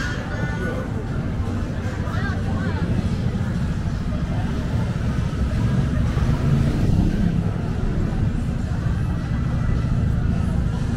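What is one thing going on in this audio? Traffic hums steadily in the background.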